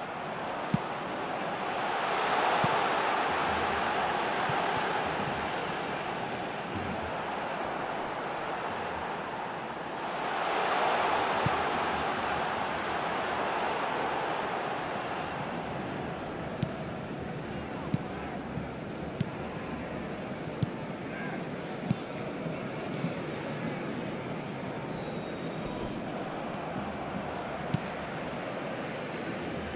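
A large stadium crowd roars steadily, swelling loudly twice.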